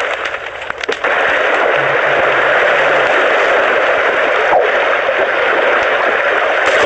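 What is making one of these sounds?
Ocean waves wash steadily.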